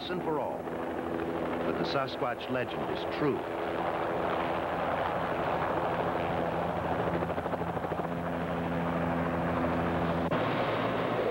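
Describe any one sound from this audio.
A helicopter engine whines and its rotor whirs steadily.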